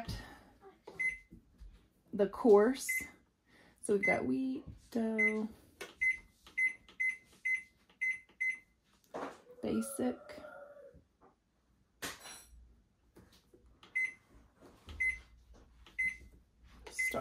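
A bread machine beeps in short, high electronic tones as its buttons are pressed.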